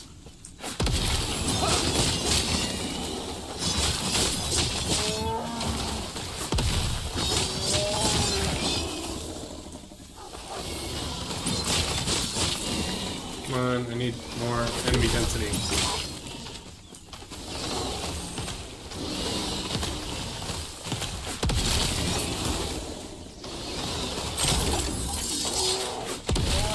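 Magic blasts crackle and boom during a fight.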